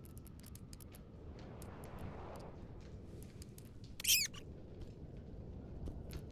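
Small footsteps patter lightly on wooden boards.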